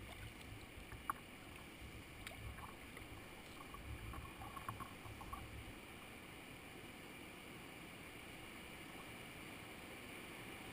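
A river rushes and churns steadily around a kayak outdoors.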